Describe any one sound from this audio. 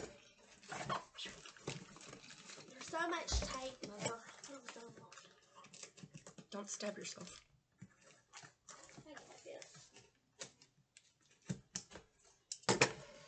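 Cardboard rustles and scrapes as a box is opened.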